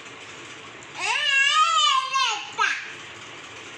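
A toy car plays a loud, wavering electronic siren.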